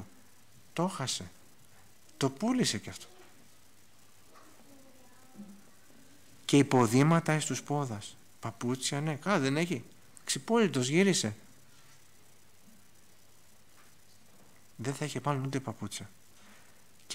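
A middle-aged man speaks with emphasis into a microphone, pausing between phrases.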